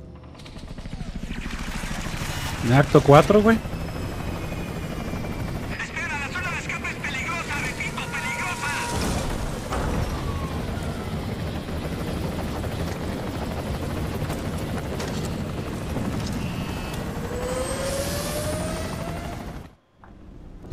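A helicopter's rotors thump loudly overhead.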